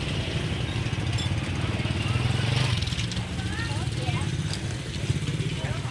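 Children and women chatter in a crowd.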